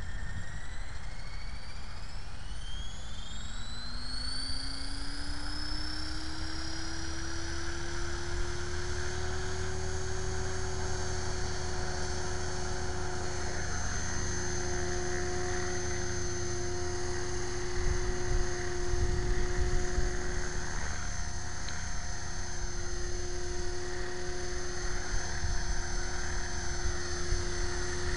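A model helicopter's motor whines, rising in pitch as it spins up, then holds a steady high whine.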